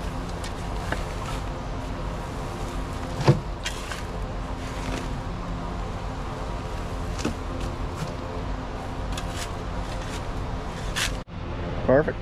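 A shovel scrapes and thumps into hard dirt.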